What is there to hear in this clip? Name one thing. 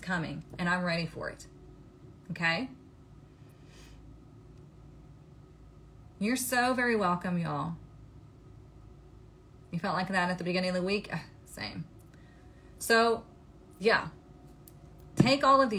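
A young woman speaks close up, in short bursts with pauses.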